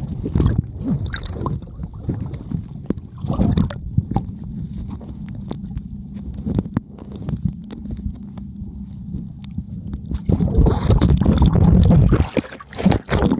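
Muffled underwater rumbling and sloshing go on.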